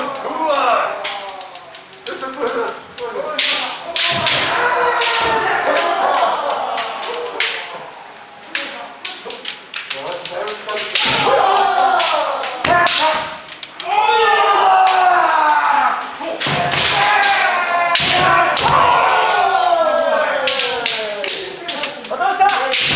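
Bamboo swords clack sharply against each other and against armour.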